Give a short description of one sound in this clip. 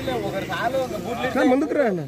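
A crowd of men talks and cheers loudly.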